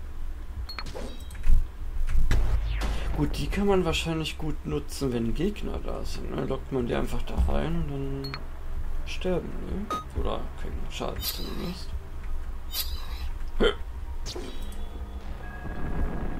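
Short electronic chimes ring out as items are picked up.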